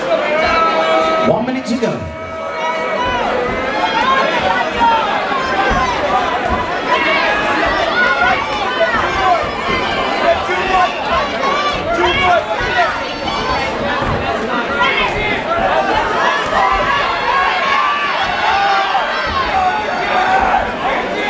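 A crowd of people shouts and cheers loudly in an echoing hall.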